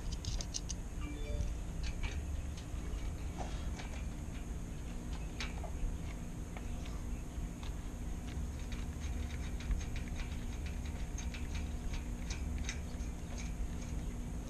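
Small metal lock parts click together in a man's fingers.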